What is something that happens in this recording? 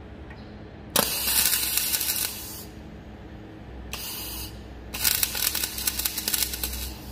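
Compressed air hisses loudly from a nozzle in short bursts.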